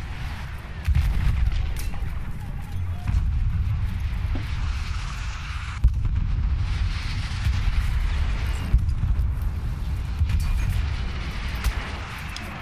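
A heavy gun fires in rapid bursts with deep booming blasts.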